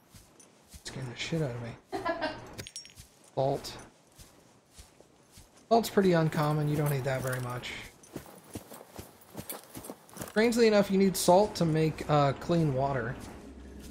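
A man talks into a close microphone, calmly and with some animation.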